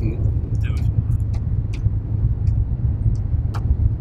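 Plastic clicks and rattles as a man handles a small device.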